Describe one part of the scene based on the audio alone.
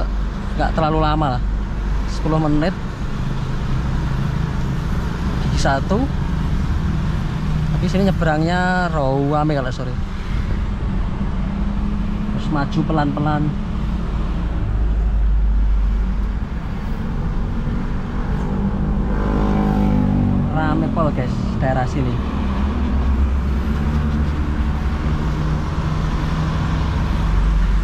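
Passing trucks and motorbikes rumble by outside.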